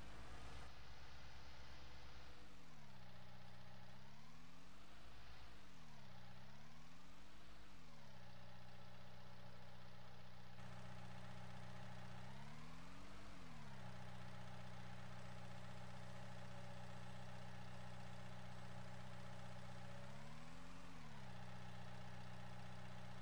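A diesel engine hums steadily and revs up and down several times.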